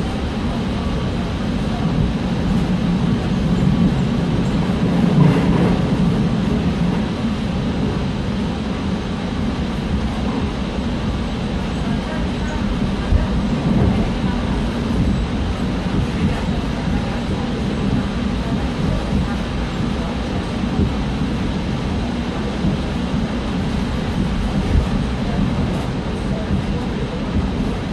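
A subway train rumbles along the track.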